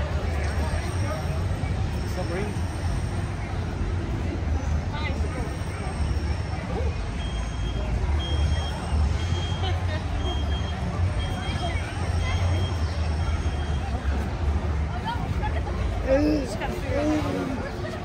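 A crowd of people chatters in the distance outdoors.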